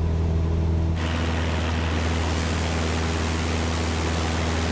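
A propeller plane's engine hums steadily from outside.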